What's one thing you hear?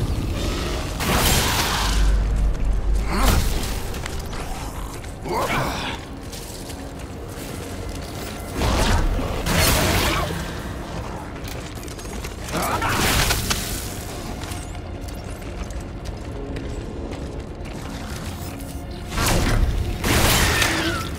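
Loud gunshots bang with rushing bursts.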